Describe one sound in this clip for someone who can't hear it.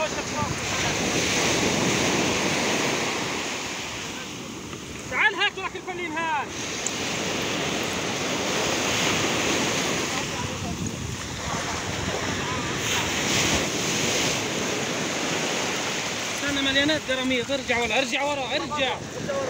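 Waves wash onto the shore in a steady rush.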